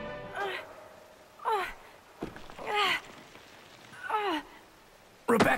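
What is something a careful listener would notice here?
A young woman grunts and gasps with strain.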